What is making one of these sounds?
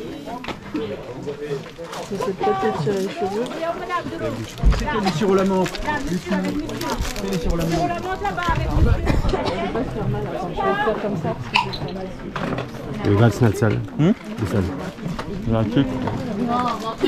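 Several men and women talk over one another nearby.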